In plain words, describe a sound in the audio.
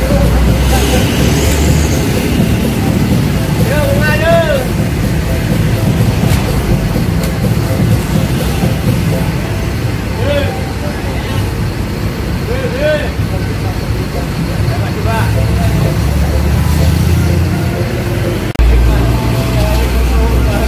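Men and women talk nearby in a crowd.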